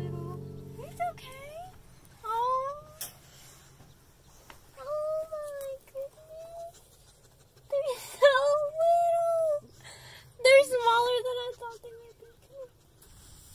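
A young woman talks cheerfully nearby.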